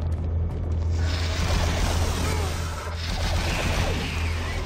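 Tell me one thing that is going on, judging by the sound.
A plasma gun fires rapid zapping shots.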